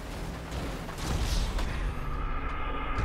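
An explosion booms with a low rumble.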